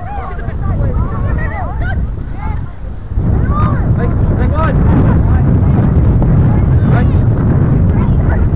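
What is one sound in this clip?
Young players shout to each other across an open field, some way off.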